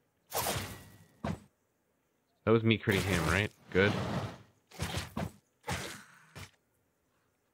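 Weapon blows strike again and again in short bursts.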